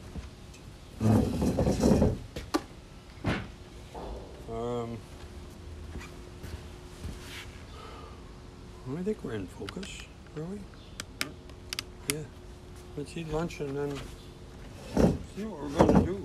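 Footsteps thud on a wooden deck close by.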